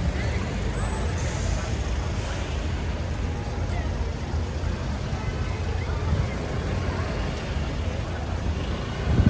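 A crowd of people murmurs in a busy street.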